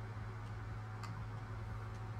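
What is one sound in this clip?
A menu selection clicks once.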